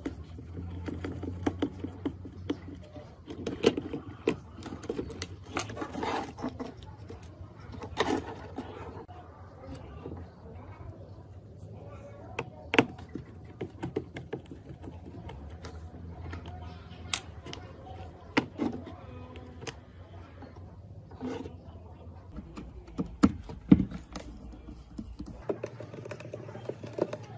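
Plastic parts click and knock as hands take apart a small device.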